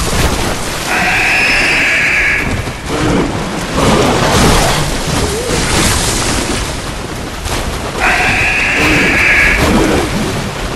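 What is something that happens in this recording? Creatures shriek and wail.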